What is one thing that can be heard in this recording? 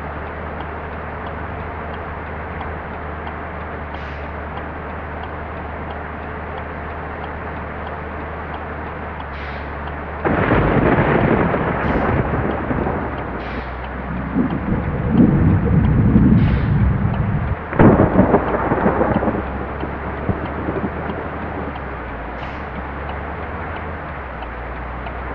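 Rain patters on a windscreen.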